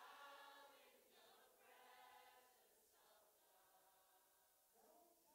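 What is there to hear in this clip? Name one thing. A man sings loudly through a microphone in a large echoing hall.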